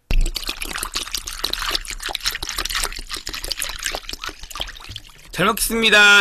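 Liquid pours and splashes into a glass.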